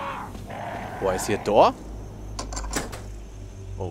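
A metal lock clicks and rattles.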